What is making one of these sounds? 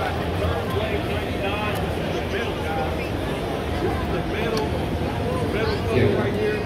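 A large crowd chatters all around in a big echoing hall.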